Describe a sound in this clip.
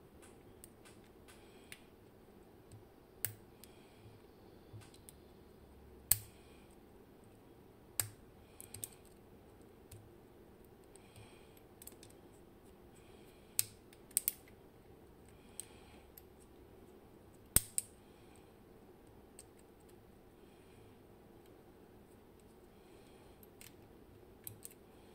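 A small metal tool clicks and scrapes against a metal part.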